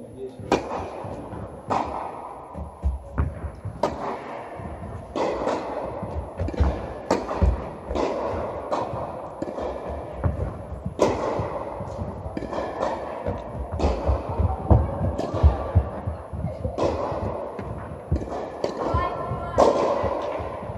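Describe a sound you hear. Tennis balls are struck with rackets, each hit a sharp pop followed by echo in a large hall.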